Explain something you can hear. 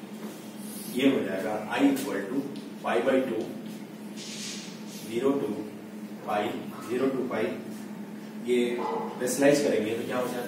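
A man speaks clearly, explaining in a steady teaching voice.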